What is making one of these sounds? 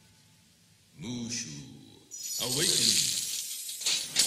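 An elderly man speaks with alarm.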